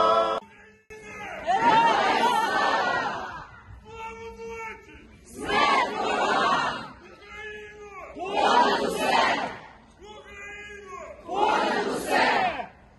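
A large crowd cheers and chants in loud bursts.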